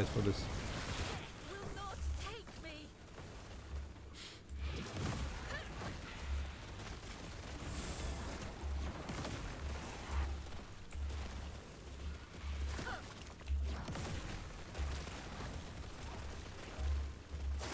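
Heavy blows thud against monsters.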